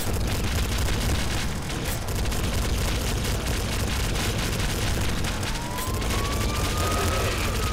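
Explosions burst with deep booms.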